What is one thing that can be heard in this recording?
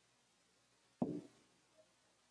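A ceramic cup is set down on a hard counter with a knock.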